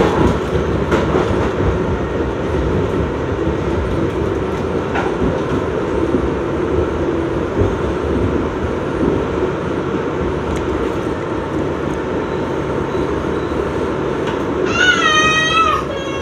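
A microwave oven hums steadily as it runs.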